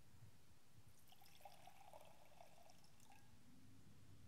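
Liquid pours from a pitcher into a cup.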